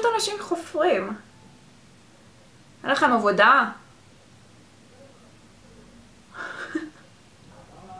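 A young woman talks with animation close to a microphone, in short bursts.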